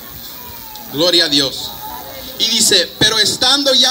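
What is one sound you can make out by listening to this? Men sing loudly together through a loudspeaker outdoors.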